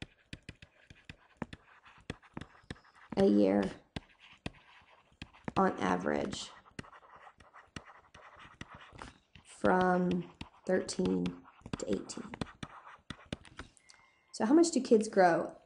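A stylus taps and scratches lightly on a tablet.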